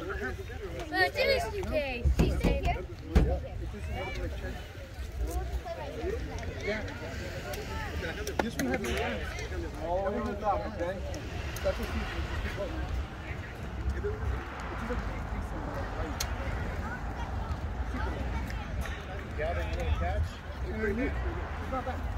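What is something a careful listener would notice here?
Men talk and call out outdoors, some close by and some far off.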